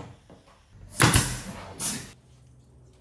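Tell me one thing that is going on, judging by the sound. A nail gun fires with sharp, loud bangs.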